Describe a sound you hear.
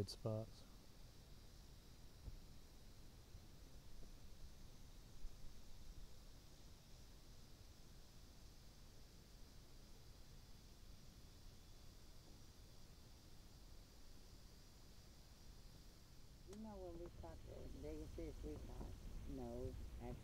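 Water laps gently outdoors.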